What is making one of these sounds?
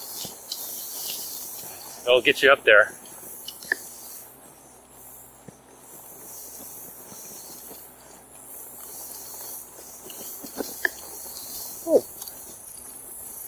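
Wind rushes past steadily, outdoors.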